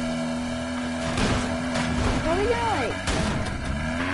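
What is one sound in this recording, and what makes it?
A vehicle crashes with loud thuds and clatter.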